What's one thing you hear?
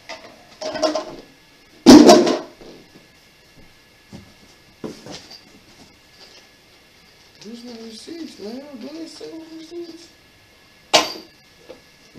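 Cardboard rustles and thumps as a box is handled.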